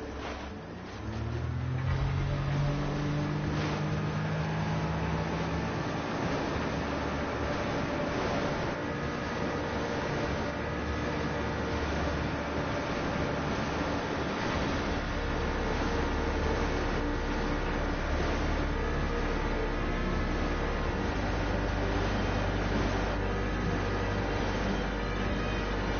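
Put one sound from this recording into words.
A jet ski engine revs up and drones steadily.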